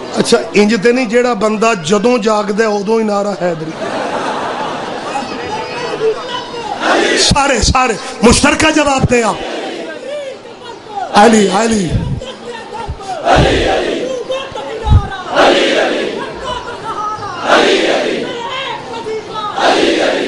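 A man speaks passionately into a microphone over loudspeakers, chanting and shouting.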